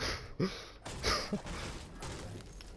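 A pickaxe strikes a wooden wall.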